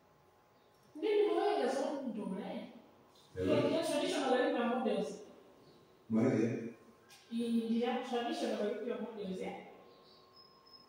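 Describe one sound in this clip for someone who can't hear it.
A man speaks to a class.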